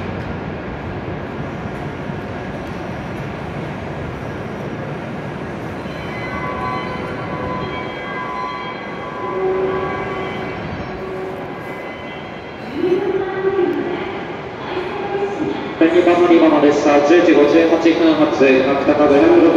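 A stopped train hums steadily in an echoing station.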